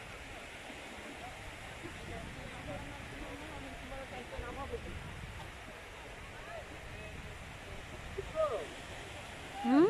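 Small waves wash gently onto a shore.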